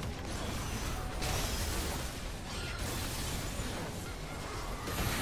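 Game spells and combat effects clash and burst loudly.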